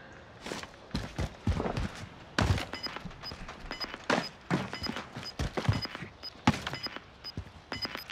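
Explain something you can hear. Footsteps thud quickly on a hard rooftop.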